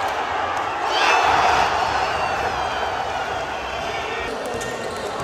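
A crowd cheers loudly in a large echoing hall.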